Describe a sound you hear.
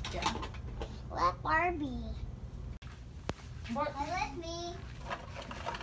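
A small child speaks in a high voice.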